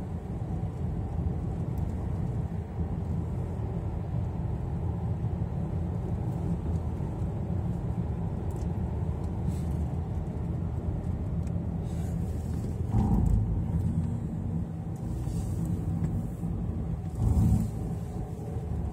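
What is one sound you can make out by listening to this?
Tyres roll on smooth pavement.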